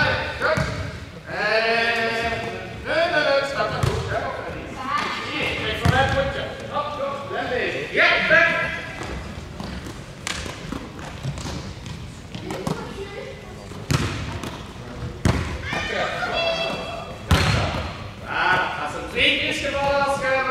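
Young players shout and call out to each other in a large echoing hall.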